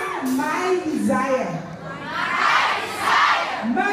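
A young woman sings along into a microphone.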